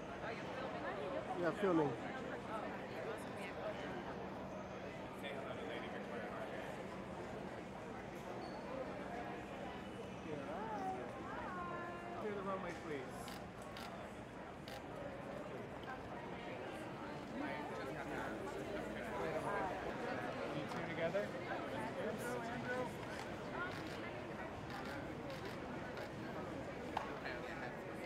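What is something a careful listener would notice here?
A crowd chatters in the background.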